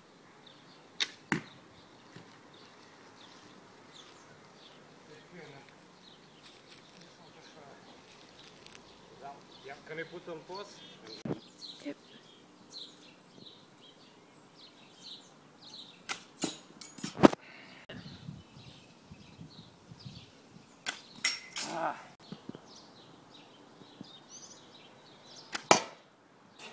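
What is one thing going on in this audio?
A bowstring twangs as an arrow is released.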